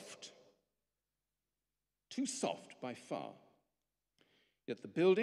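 A middle-aged man speaks calmly into a microphone, in pauses, in a large echoing room.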